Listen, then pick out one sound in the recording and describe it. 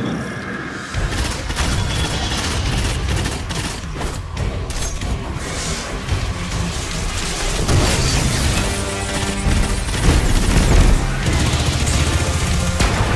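Rapid gunfire rattles loudly and steadily.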